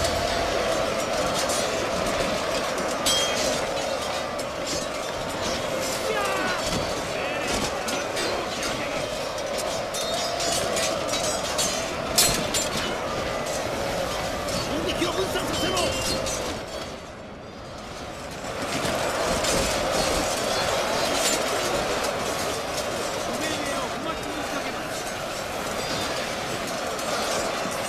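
Swords clash and clang again and again in a battle.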